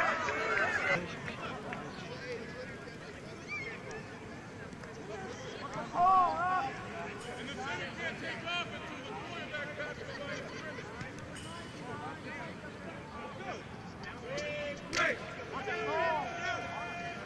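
Many voices chatter at a distance across an open field.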